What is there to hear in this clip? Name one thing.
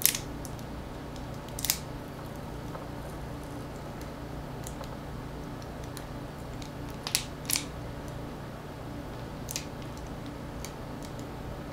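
Small plastic pieces click sharply in a man's hands now and then.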